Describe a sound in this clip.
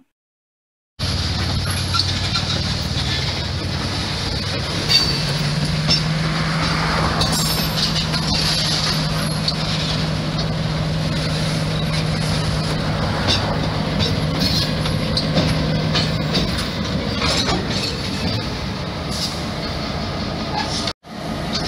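A diesel locomotive engine rumbles steadily nearby.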